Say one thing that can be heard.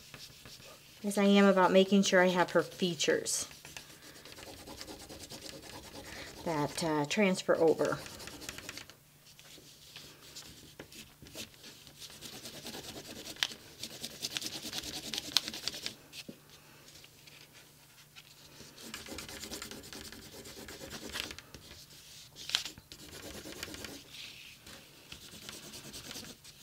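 A wooden tool scrapes and rubs across cloth.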